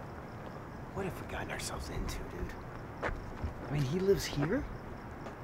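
A young man speaks nearby.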